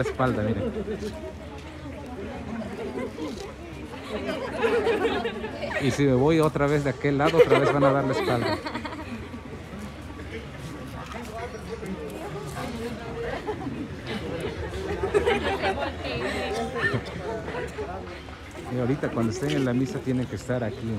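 Young women chatter and talk close by.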